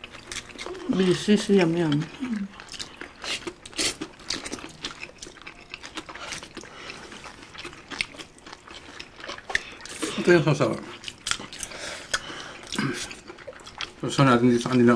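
Crunchy food is chewed loudly close to a microphone.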